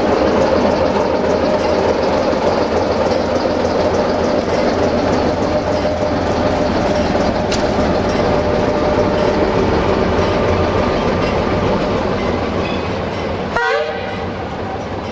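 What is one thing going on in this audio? An electric locomotive hums as it rolls past.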